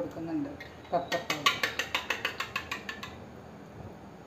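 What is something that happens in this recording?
A fork whisks eggs in a metal bowl with rapid clinks.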